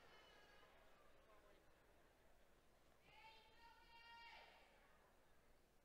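A large crowd murmurs softly in a big echoing hall.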